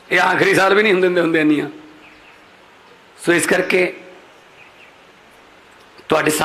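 A man speaks forcefully into a microphone over loudspeakers, with pauses.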